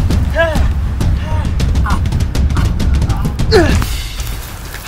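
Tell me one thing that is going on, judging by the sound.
A man cries out and groans in pain close by.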